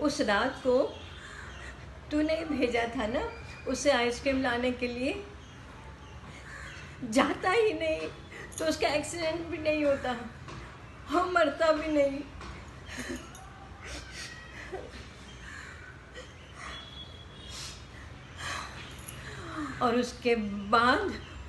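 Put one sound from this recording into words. An elderly woman speaks with emotion, close by, heard through a phone or online call.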